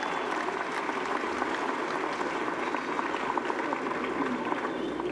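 A crowd applauds and claps steadily.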